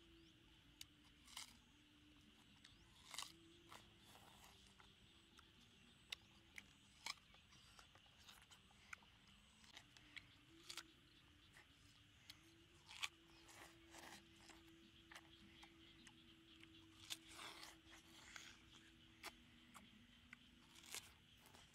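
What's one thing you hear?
A boy bites into a ripe watermelon with wet crunches.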